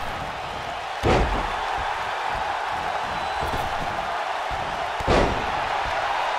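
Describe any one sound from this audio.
A body slams down onto a wrestling ring mat.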